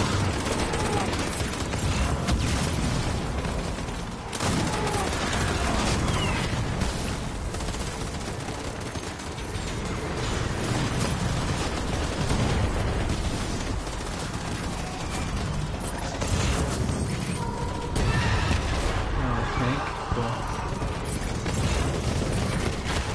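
Low explosions and battle noise rumble throughout.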